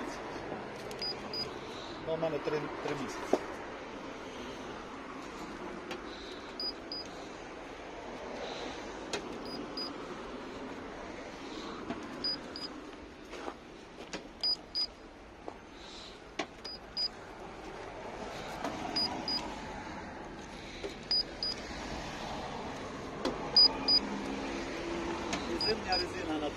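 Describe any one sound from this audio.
A handheld gauge beeps in short double chirps, again and again.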